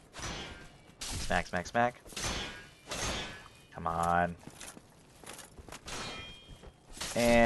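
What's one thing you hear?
A sword strikes a body with a heavy thud.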